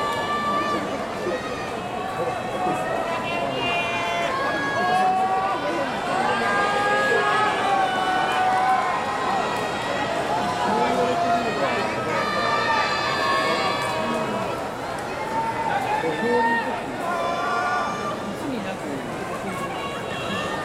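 A man calls out in a long, drawn-out chanting voice, echoing in a large hall.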